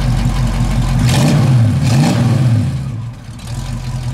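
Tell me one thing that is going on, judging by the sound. A car engine revs up sharply and drops back to idle.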